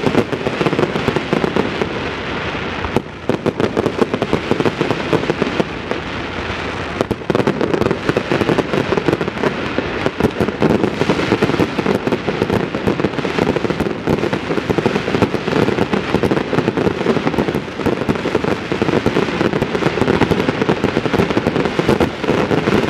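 Fireworks crackle and bang rapidly in the distance.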